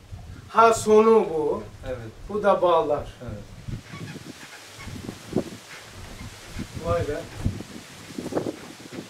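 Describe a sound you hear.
An elderly man speaks calmly, nearby, with pauses.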